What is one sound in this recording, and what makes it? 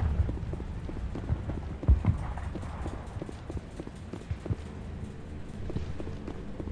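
Heavy footsteps thud on a metal floor.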